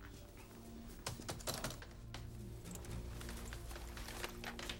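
Keys clatter as someone types quickly on a keyboard.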